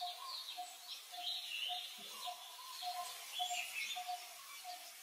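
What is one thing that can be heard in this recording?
A baby monkey squeaks shrilly.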